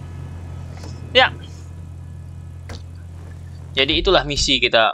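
A car engine hums.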